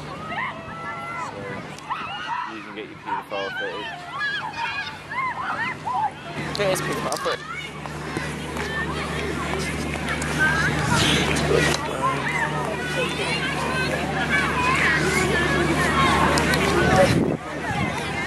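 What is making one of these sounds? Children shout and chatter at a distance outdoors.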